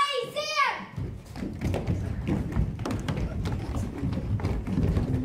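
Feet stomp and shuffle on a wooden floor as children jump about.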